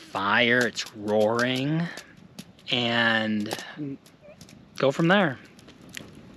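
A man speaks up close with animation.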